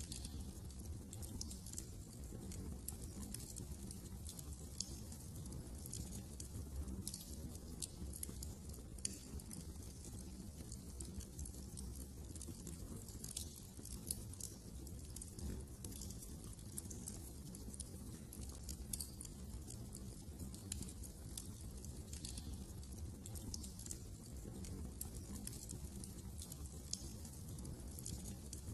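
A wood fire crackles and pops steadily.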